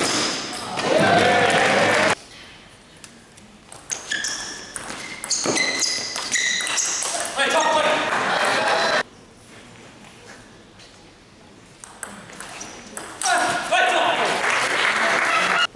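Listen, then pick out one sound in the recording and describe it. A crowd claps and cheers after each point.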